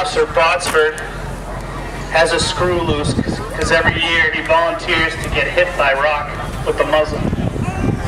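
A man speaks into a handheld microphone, heard over a loudspeaker outdoors.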